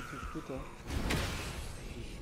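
An axe whooshes through the air.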